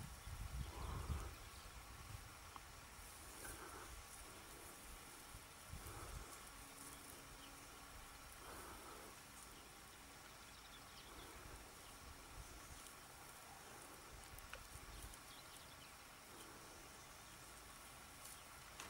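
Wind rustles through dry wheat stalks outdoors.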